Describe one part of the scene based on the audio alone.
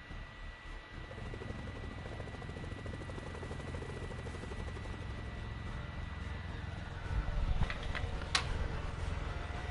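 Helicopter rotors thrum steadily overhead.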